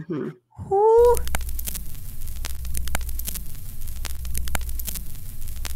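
Television static hisses and crackles loudly.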